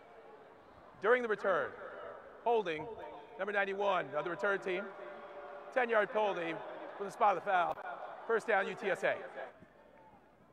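A man announces through a loudspeaker in a large open stadium, speaking calmly and clearly.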